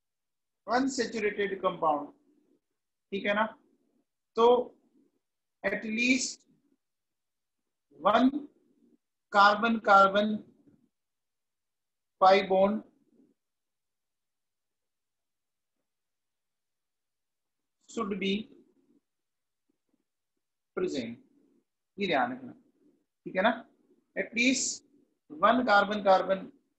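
A man speaks calmly and slowly in short phrases, close to a microphone, with pauses between them.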